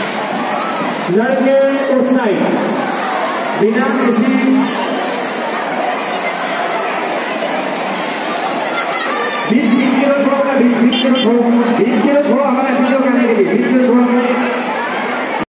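A large crowd of children murmurs and chatters outdoors.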